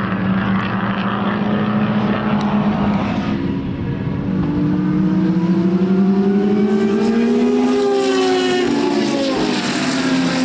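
A racing car engine roars loudly as it speeds past.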